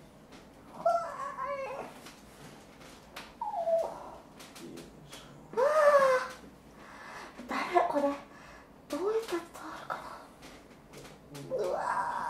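A young woman cries out close by in short, strained bursts.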